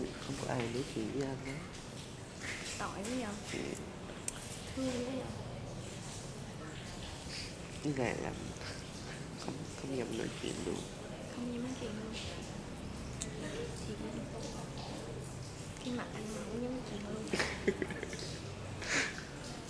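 A young woman talks softly and cheerfully nearby.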